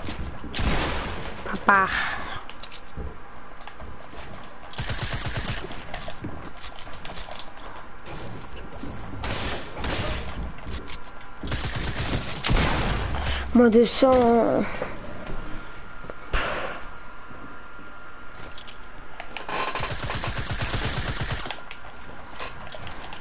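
Footsteps thump on wooden floors in a video game.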